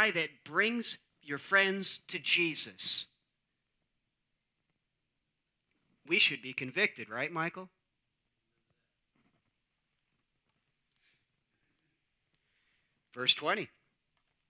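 A man speaks calmly into a microphone, with long pauses between phrases.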